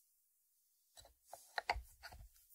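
A ceramic lid clinks back onto a ceramic dish.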